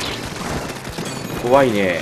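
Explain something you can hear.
A game explosion bursts with a bang.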